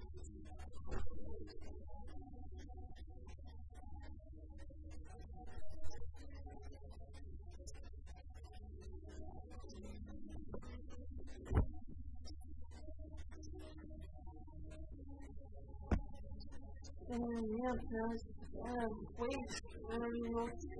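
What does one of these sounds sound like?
Cheerful music plays.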